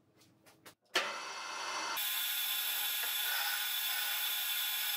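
A lathe motor hums steadily as the spindle spins.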